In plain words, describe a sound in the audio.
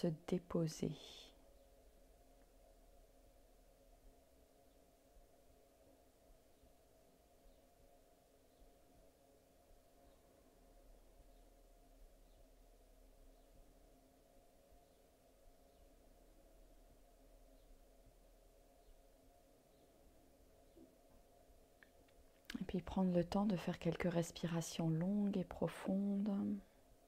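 A middle-aged woman speaks calmly and softly into a close microphone.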